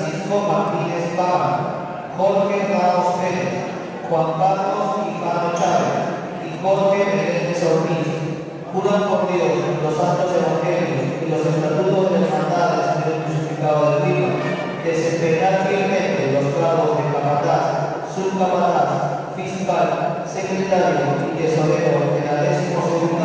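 A man speaks into a microphone, reading out solemnly over a loudspeaker in an echoing hall.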